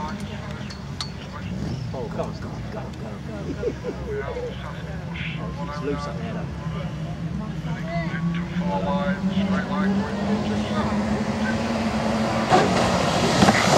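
Several car engines roar and rev as cars race on a dirt track.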